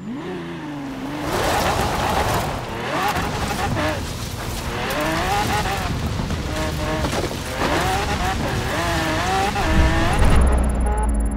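Tyres rumble over grass and gravel.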